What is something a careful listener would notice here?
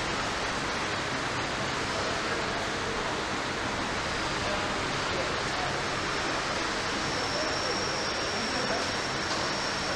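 A car body rolls along a conveyor.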